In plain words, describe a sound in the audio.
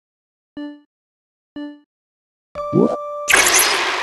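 A game countdown beeps in short pitched tones.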